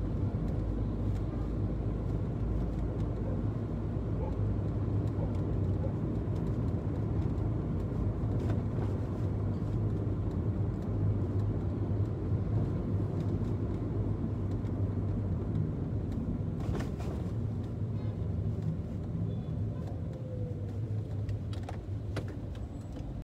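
Tyres roll on wet asphalt.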